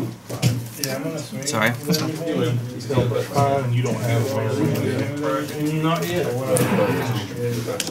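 Playing cards slap and slide on a mat.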